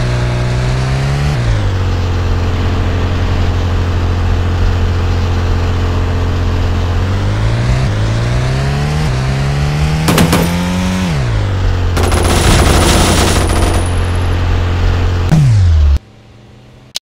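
A car engine hums and revs as a car drives.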